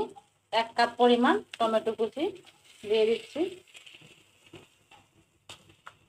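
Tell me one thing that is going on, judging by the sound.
Chopped tomatoes tumble into a hot pan and sizzle.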